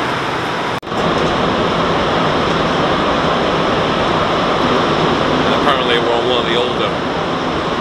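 A subway train rattles along loudly.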